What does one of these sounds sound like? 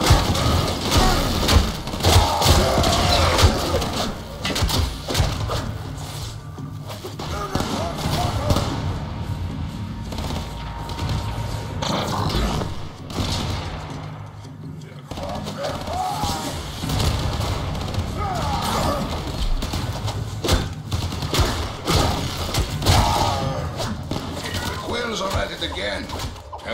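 Gunfire and energy blasts crackle in a fast game fight.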